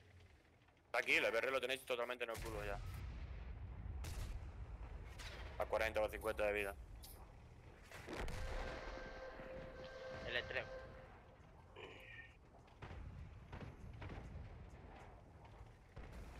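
Tank cannons fire and shells explode with loud booms.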